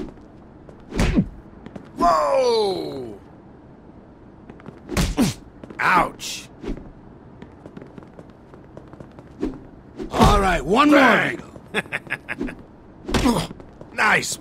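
Punches thud heavily against a body.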